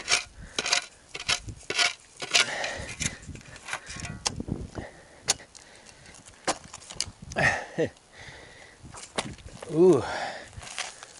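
A trowel scrapes and chips at hard ground.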